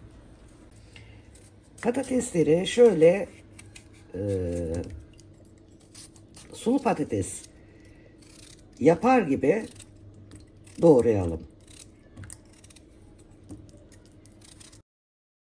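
A knife scrapes and slices through a raw potato.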